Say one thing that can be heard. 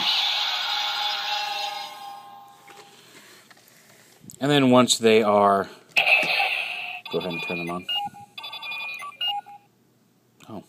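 A toy plays electronic chimes and beeping tones through a small speaker.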